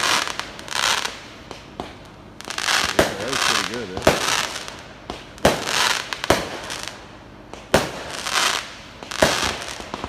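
Fireworks bang sharply and echo outdoors.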